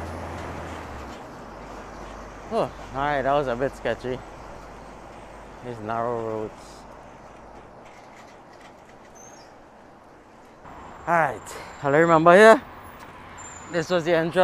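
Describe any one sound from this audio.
Bicycle tyres roll steadily on a paved road.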